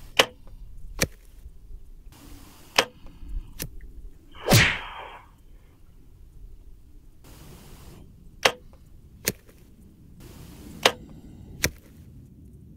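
An arrow thuds into a target.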